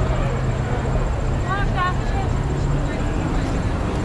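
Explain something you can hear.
A young woman shouts playfully close by.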